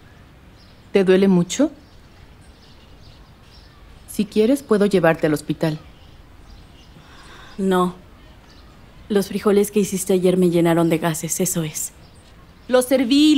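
A woman speaks in short, calm bursts nearby.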